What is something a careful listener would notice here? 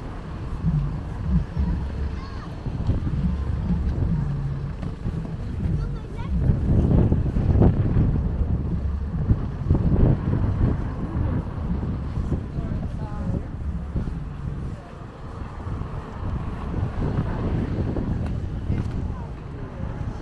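Wind rumbles and gusts loudly outdoors.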